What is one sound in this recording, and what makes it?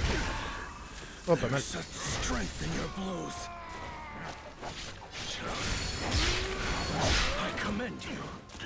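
Weapons clash and strike in a fierce fight.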